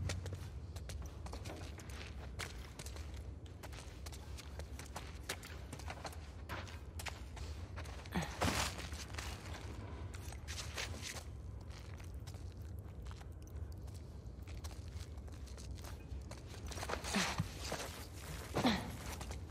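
Footsteps scuff and crunch on a gritty floor.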